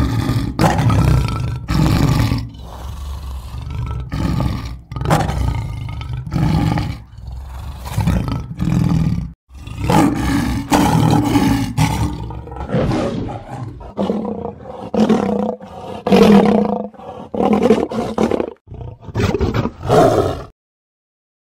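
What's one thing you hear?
A man talks with animation, close to the microphone.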